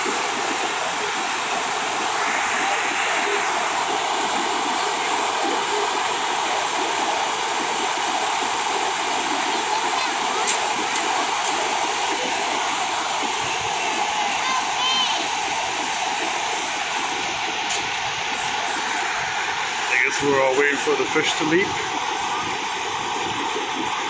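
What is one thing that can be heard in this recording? Rapids rush and roar loudly and steadily over rocks.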